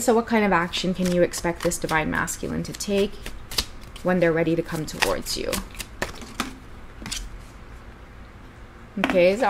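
Playing cards shuffle and flick together.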